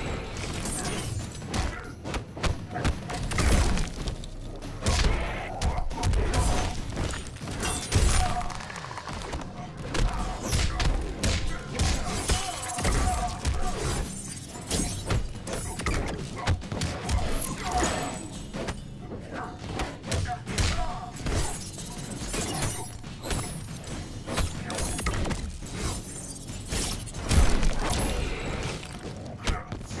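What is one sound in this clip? Punches and kicks land with heavy thuds over and over.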